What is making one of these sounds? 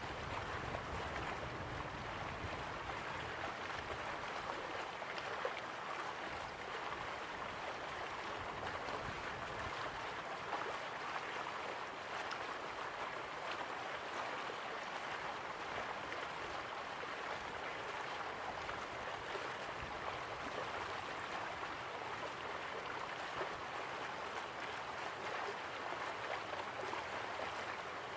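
Waterfalls rush steadily in the distance.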